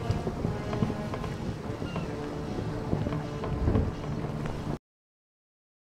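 Waves wash against a wooden ship's hull.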